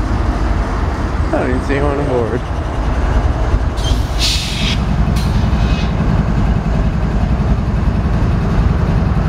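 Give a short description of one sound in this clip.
A diesel locomotive engine rumbles deeply as the train passes close by.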